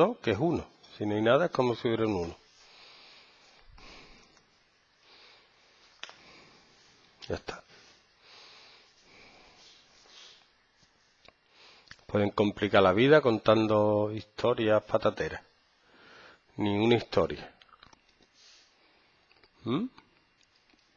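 A man talks calmly into a close headset microphone, with pauses.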